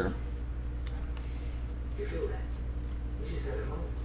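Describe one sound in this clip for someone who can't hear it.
Trading cards rustle as they are shuffled by hand.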